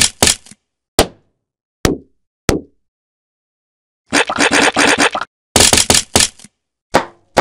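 Short bursts of crunching and smashing game sound effects play.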